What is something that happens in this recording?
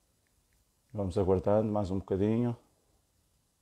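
A man speaks briefly and calmly, close to the microphone.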